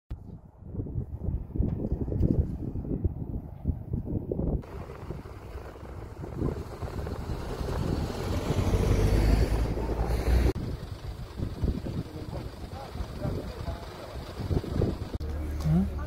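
Wind blows across an open road.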